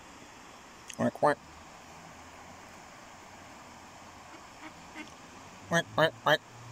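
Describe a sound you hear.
A duck quacks loudly nearby.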